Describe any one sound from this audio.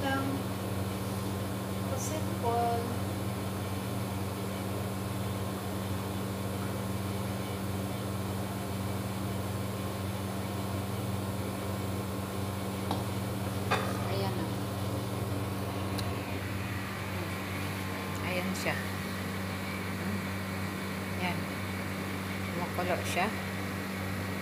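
A gas burner hums steadily.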